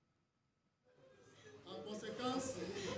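A man reads out formally into a microphone.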